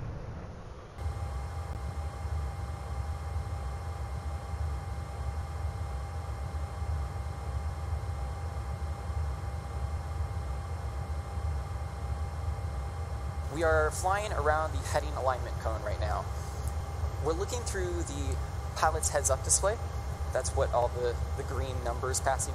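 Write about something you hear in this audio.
A low, steady rumble of airflow hums.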